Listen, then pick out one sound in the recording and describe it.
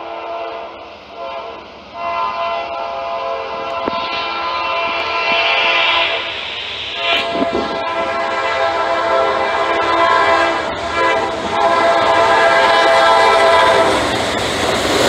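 A train horn blows loudly in long blasts.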